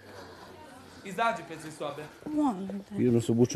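A woman speaks quickly and with emotion close by.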